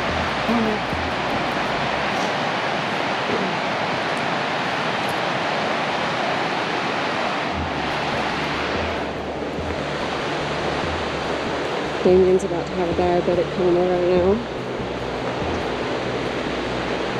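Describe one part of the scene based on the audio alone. A river rushes and roars steadily nearby.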